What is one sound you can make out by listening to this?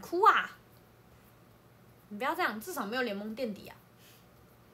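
A young woman speaks close to the microphone in a light, playful voice.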